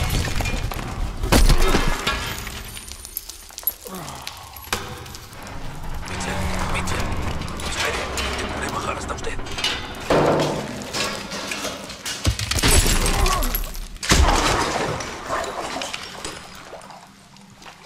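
Heavy debris crashes and rumbles as a structure collapses.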